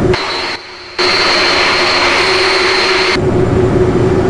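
A jet engine whines loudly outside beside the wing.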